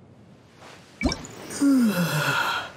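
A game menu makes a short whooshing chime as it opens.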